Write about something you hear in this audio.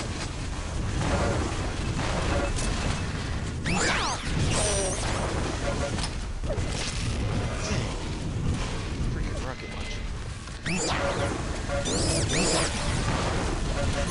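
An electric beam weapon in a video game crackles and buzzes as it fires.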